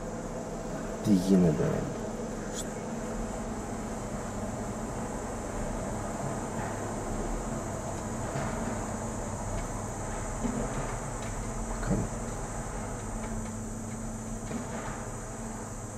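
An excavator bucket scrapes and dumps earth into a truck bed with loud thuds.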